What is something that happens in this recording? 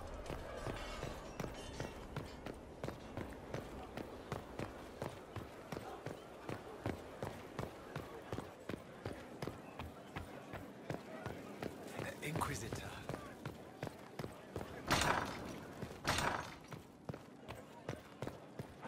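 Footsteps run quickly on stone.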